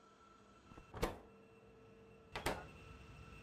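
A short menu click sounds.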